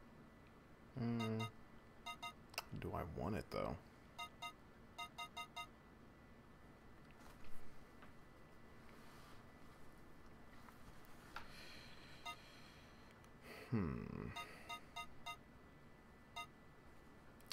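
Short electronic menu blips beep in quick bursts.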